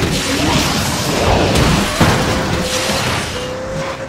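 A nitro boost whooshes.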